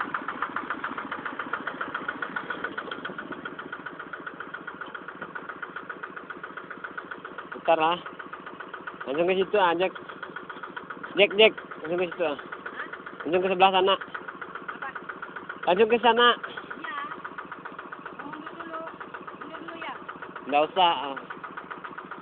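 A small diesel engine chugs steadily and rapidly close by.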